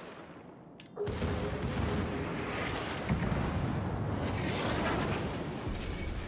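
Shells crash into the water in big splashes.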